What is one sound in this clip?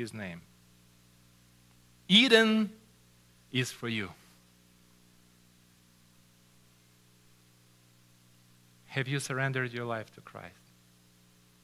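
A middle-aged man speaks in short bursts with long pauses, through a microphone.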